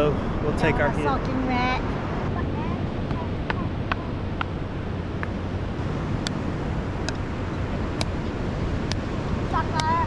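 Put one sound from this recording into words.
Waves wash steadily onto a shore in the wind.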